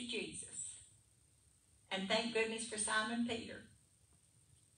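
An older woman speaks calmly through a microphone, in a room with some echo.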